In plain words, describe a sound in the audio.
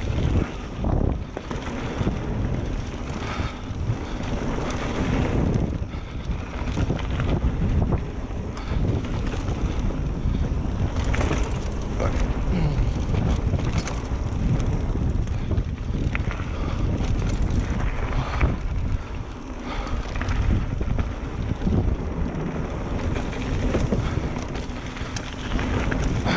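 Bicycle tyres crunch and rumble over loose dirt and stones.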